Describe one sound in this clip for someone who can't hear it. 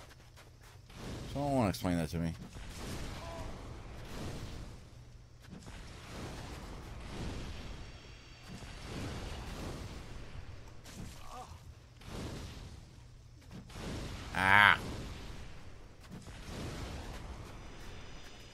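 Fireballs whoosh and burst with a roar.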